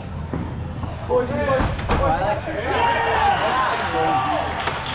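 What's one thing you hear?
A man shouts instructions loudly in a large echoing hall.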